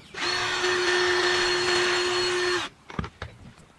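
A power drill whirs as it bores into wood.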